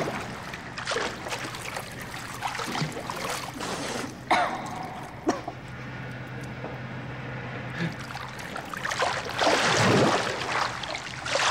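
Water splashes as a swimmer paddles through a pool.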